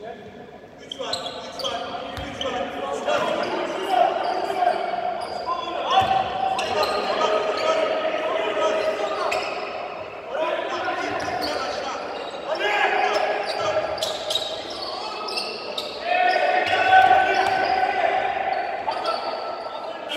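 Young men shout and call out across an echoing hall.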